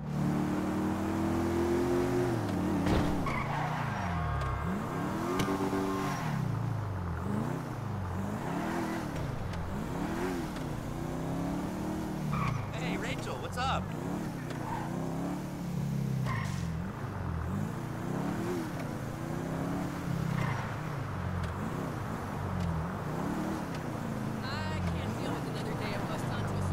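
A car engine revs up and down repeatedly as the car speeds along.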